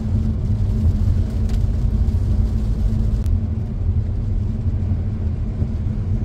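Windscreen wipers sweep across the glass.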